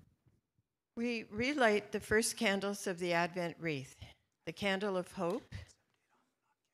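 A middle-aged woman speaks calmly through a microphone.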